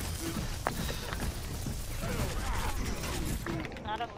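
An explosion bursts with a loud crack.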